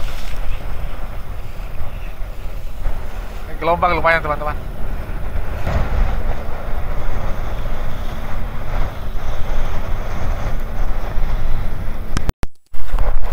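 Waves splash against a boat's hull.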